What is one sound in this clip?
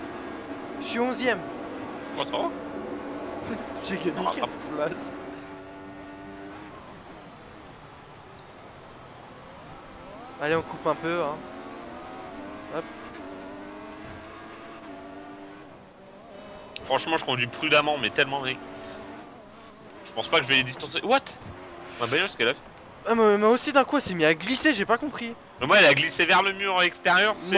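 A racing car engine roars and whines as it speeds up and slows down.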